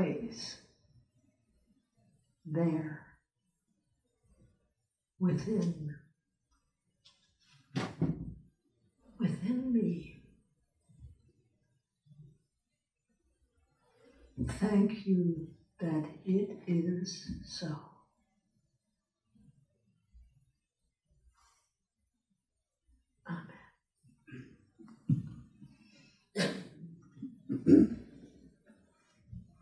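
An elderly woman speaks slowly and calmly through a microphone in a room with some echo, pausing often.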